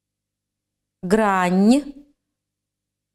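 A middle-aged woman says a word slowly and clearly, close to a microphone.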